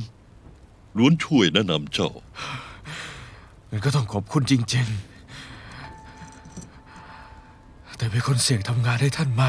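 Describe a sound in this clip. A young man speaks weakly and with strain.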